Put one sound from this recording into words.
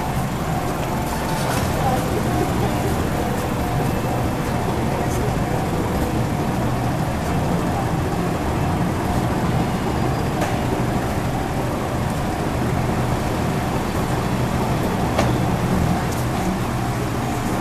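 A large crowd murmurs and chatters in the distance outdoors.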